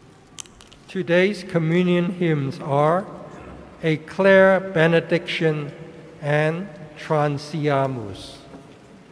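An elderly man chants through a microphone in a large echoing hall.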